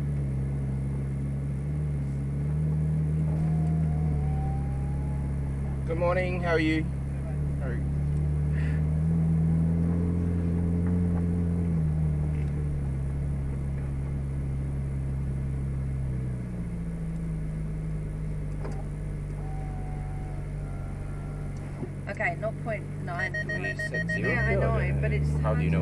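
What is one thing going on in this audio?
A car engine hums steadily as the car rolls slowly forward, its pitch rising and falling.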